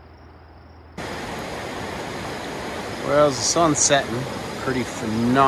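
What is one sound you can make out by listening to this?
A river rushes and splashes nearby.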